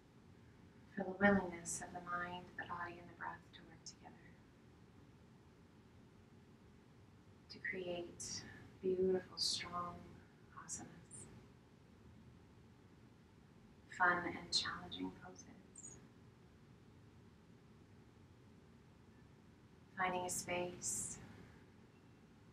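A woman speaks calmly and softly in short phrases, close to a microphone.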